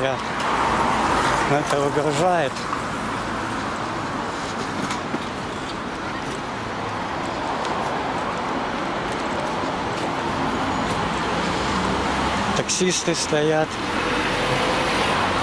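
Traffic hums steadily in the street outdoors.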